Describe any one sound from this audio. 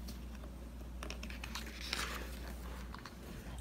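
A stiff paper page turns with a rustle.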